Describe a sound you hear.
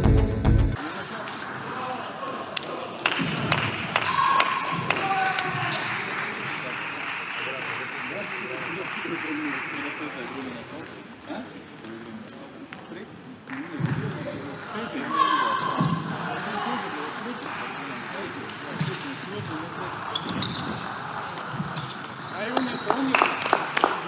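A table tennis ball clicks back and forth off paddles and the table in a large echoing hall.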